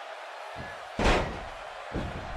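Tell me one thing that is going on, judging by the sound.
A loud body slam crashes onto a mat.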